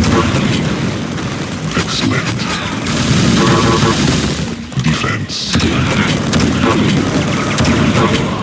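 Game guns fire in rapid bursts.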